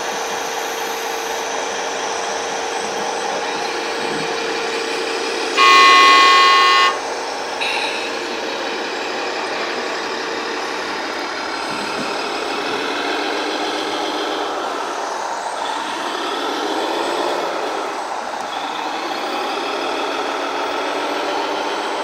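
A small electric motor whines as a model truck drives over rough ground.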